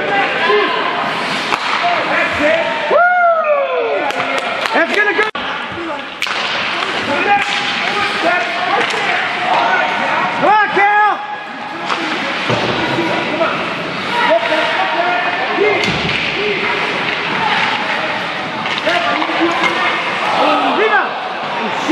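Young players shout across the ice.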